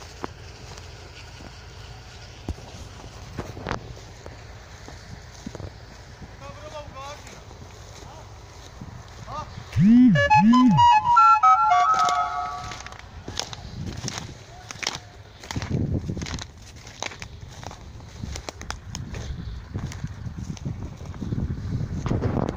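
Dry burnt grass crunches underfoot.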